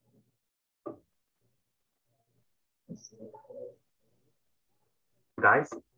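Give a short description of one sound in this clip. A woman speaks calmly over an online call.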